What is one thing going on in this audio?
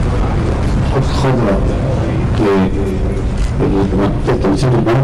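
A man speaks nearby, heard clearly over the crowd.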